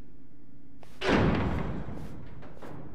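A heavy metal door bangs open.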